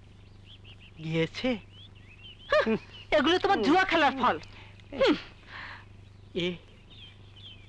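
A middle-aged woman speaks anxiously, close by.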